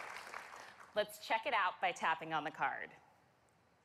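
A young woman speaks cheerfully into a microphone in a large hall.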